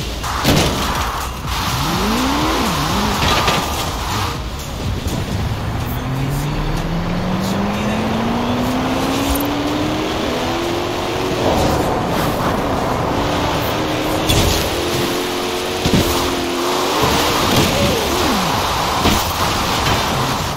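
A racing car engine roars and revs up through the gears.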